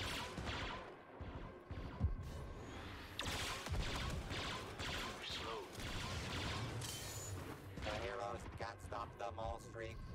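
Blasters fire in quick sharp shots.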